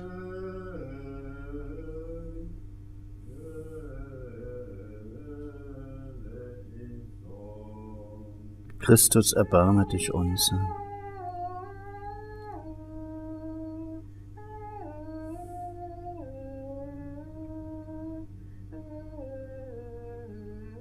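An elderly man chants slowly and steadily nearby.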